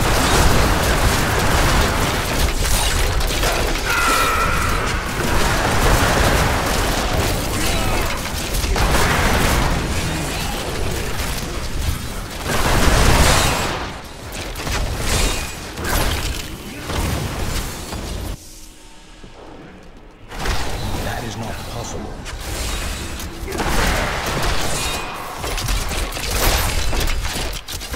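Magic blasts and combat effects crackle and boom in quick succession.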